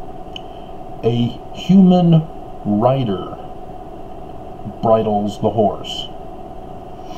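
A man speaks calmly and close to the microphone, in short bursts.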